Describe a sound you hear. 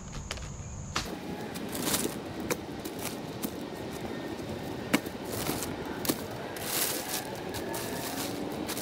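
Plastic sheeting rustles and crinkles as branches are moved over it.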